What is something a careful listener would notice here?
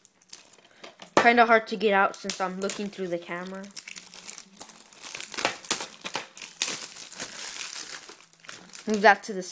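Plastic wrapping crinkles under fingers.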